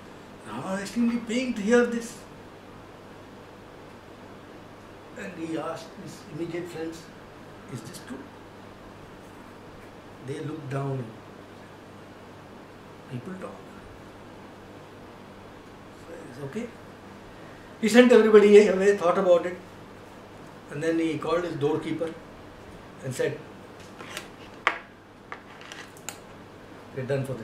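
An older man speaks calmly close by, in short bursts with pauses.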